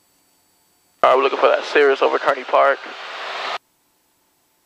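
A young man speaks calmly over a headset intercom.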